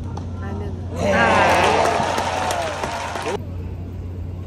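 A young man and a young woman laugh and shout excitedly close by.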